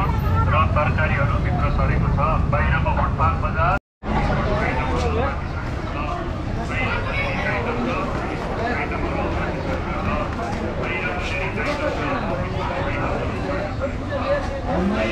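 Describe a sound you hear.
Men and women chatter nearby in a busy outdoor crowd.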